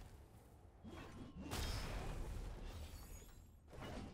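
Electricity crackles and zaps in short bursts.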